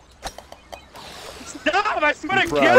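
A ball splashes into water.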